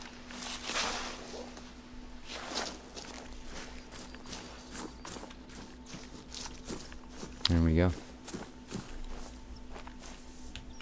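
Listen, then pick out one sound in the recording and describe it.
Footsteps rustle through dry grass and undergrowth.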